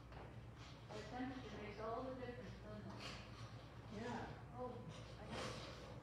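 A woman speaks calmly nearby in a large echoing hall.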